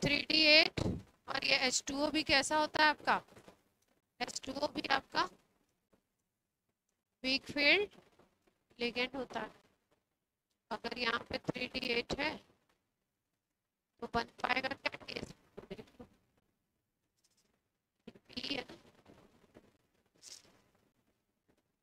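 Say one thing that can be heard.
A young woman explains in bursts through a close microphone.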